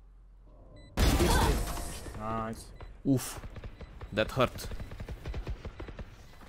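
A young man talks with animation through a microphone.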